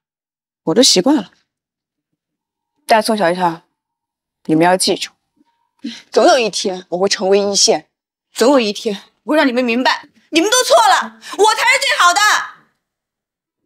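A young woman speaks tensely up close.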